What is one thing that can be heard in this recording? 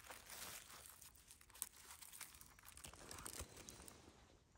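Dry leaves rustle and crackle close by.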